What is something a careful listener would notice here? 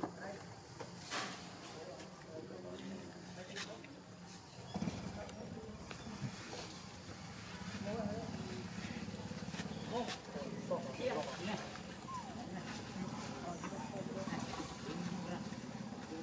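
Small monkeys scamper across dry leaves and dirt, rustling and crackling.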